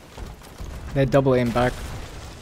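A ship's cannon fires with a deep boom.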